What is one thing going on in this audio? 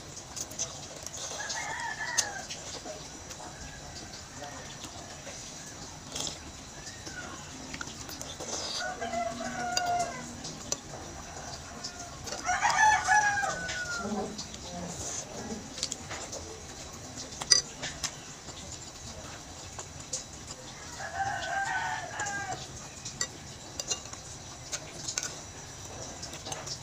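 A young woman chews wet food close to a microphone.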